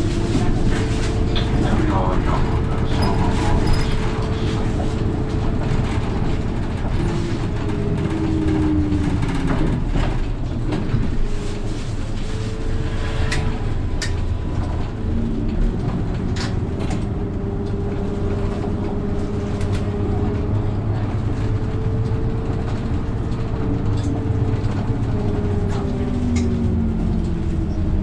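A bus engine hums and whines steadily from inside the cab.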